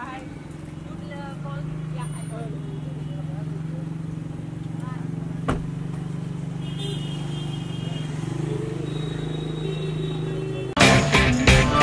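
A car engine runs.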